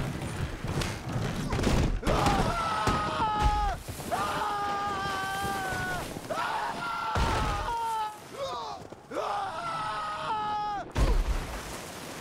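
A wooden wagon crashes and tumbles down a slope.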